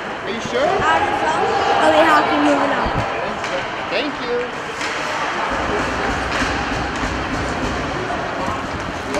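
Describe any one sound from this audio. Skates scrape and swish across ice.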